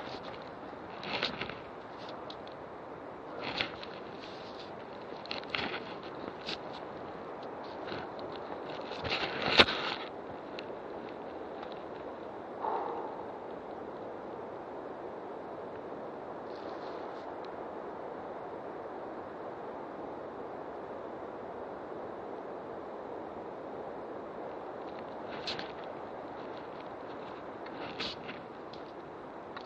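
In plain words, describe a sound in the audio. Dry leaves rustle and crackle as someone pushes through undergrowth.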